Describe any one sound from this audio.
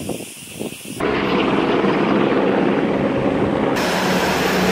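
A helicopter's rotor roars and thuds nearby.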